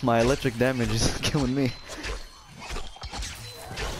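Electricity crackles and sparks.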